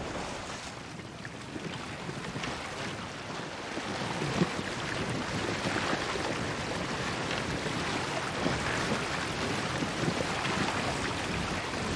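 A canvas sail flaps and rustles in the wind.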